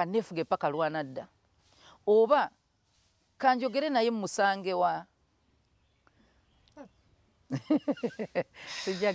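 A man speaks calmly into a microphone, close by, in short bursts.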